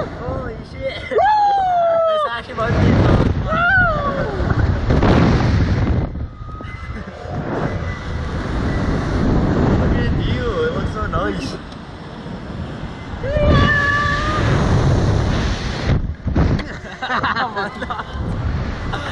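Wind rushes loudly past, outdoors.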